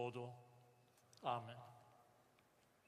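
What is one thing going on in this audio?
An elderly man chants a prayer aloud outdoors.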